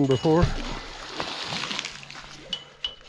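Water splashes as something drops into a pond.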